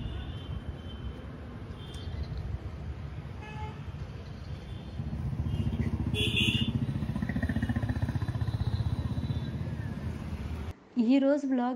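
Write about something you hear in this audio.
A car engine idles with a low, pulsing rumble.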